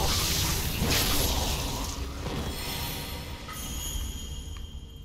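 A sword clashes and rings out with a burst of sparks.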